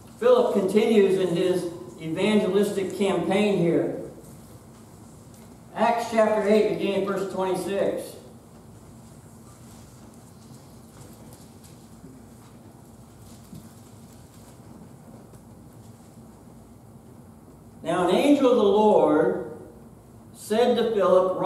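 A man reads aloud calmly through a microphone, with pauses.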